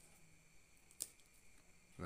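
A plastic ruler taps down onto paper.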